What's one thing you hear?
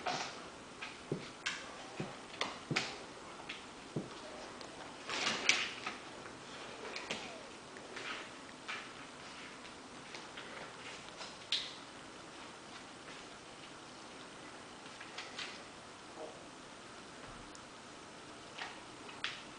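A dog's claws click and scrape on a wooden floor and wall.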